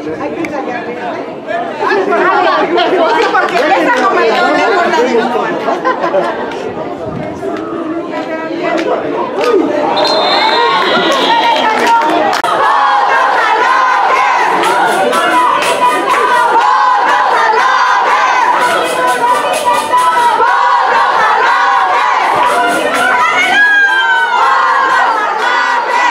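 Young men chatter and shout nearby outdoors.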